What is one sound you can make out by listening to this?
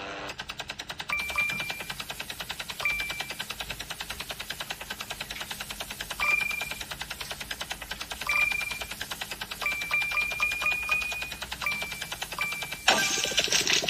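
A helicopter's rotor whirs with a fast, steady chop.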